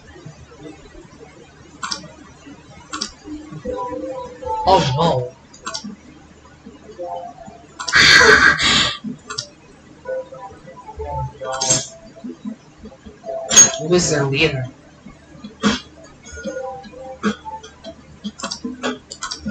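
Video game sounds play from a television nearby.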